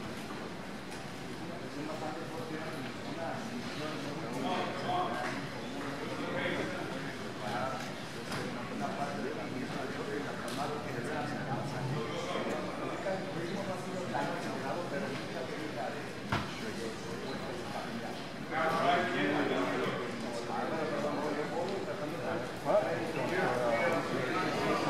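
A ringside crowd shouts and cheers in a large hall.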